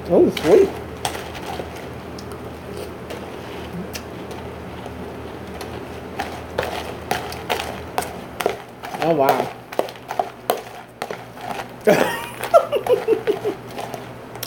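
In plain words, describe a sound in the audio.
Fingers rustle and clink cereal in a plastic tub.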